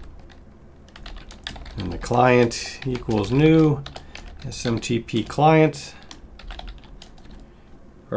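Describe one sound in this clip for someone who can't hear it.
Keys on a keyboard click as someone types.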